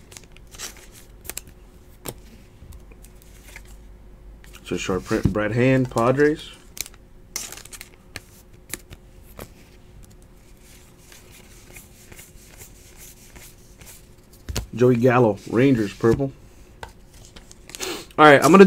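Stiff trading cards slide and click against each other as they are shuffled by hand.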